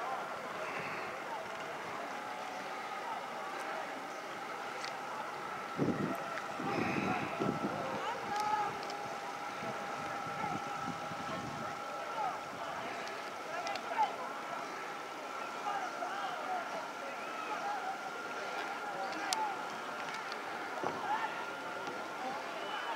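Oars splash in the water in steady strokes, some way off.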